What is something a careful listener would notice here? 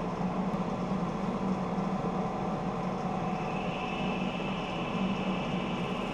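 A gouge cuts into a spinning wooden bowl.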